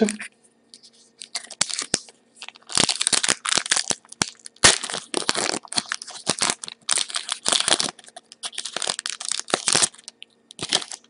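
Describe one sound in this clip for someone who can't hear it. A plastic foil wrapper crinkles and tears close by.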